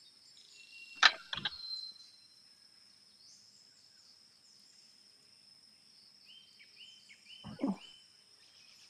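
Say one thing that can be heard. A golf club strikes a ball with a sharp smack.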